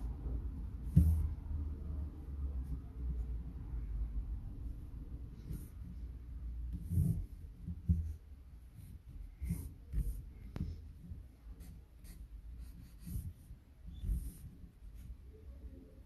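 A pen taps on paper.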